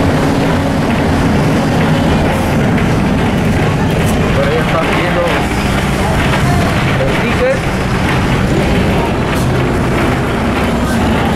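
The bus rattles and shakes over the road.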